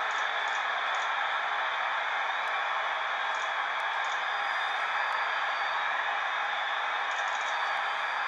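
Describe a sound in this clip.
Menu clicks beep in a video game.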